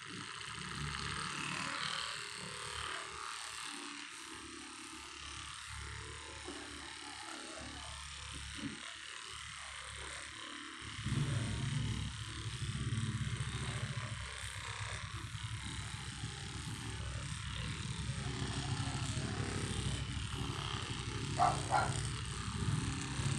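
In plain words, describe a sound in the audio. A massage gun buzzes and thumps rapidly against a body.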